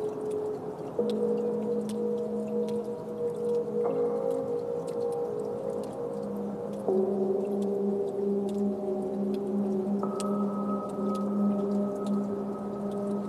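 Electronic synthesizer music plays with sustained chords that change every few seconds.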